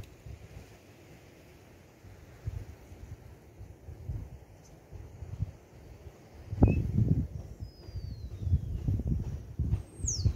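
Wind rumbles and gusts against the microphone outdoors.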